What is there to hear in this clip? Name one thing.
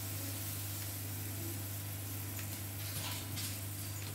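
Liquid pours into a pan.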